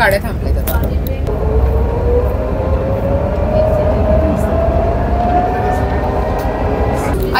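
A vehicle rumbles low and steady as it rolls along a road.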